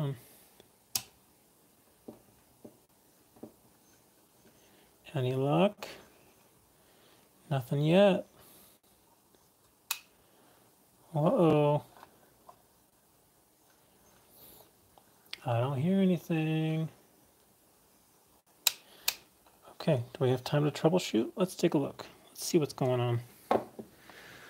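Small plastic parts click and tap.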